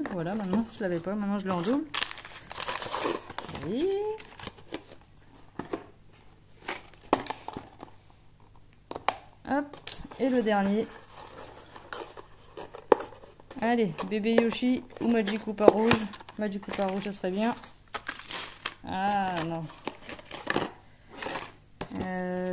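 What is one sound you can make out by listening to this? Cardboard packaging is handled and tapped, rustling close by.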